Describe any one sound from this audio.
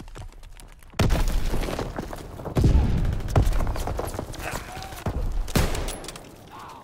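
Loud rifle shots crack, each followed by a short echo.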